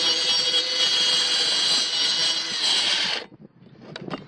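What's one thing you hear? A power saw whines as it cuts through wood.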